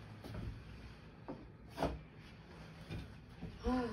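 A wardrobe door slides and bumps.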